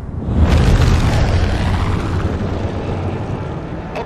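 A propeller plane's engines drone loudly overhead.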